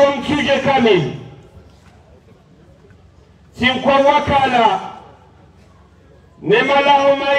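A man speaks loudly through a microphone and loudspeakers outdoors, in bursts with pauses.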